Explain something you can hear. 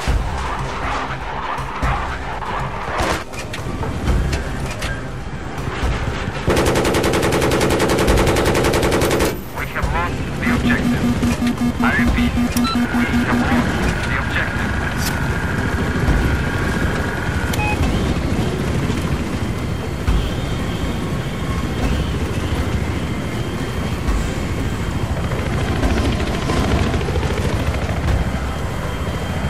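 An attack helicopter's rotor thrums in flight.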